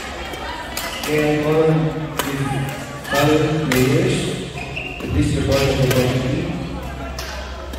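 Players shout loudly during a rally.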